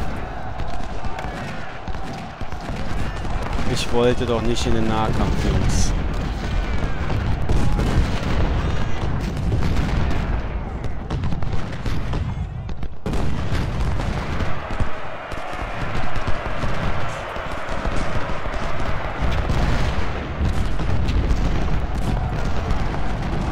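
Musket volleys crackle in rapid bursts.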